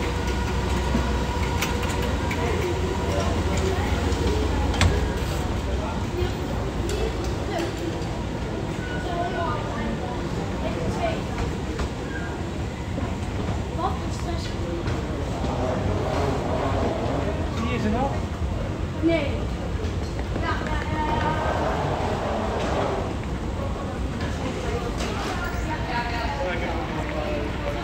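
A low steady hum fills a large echoing hall.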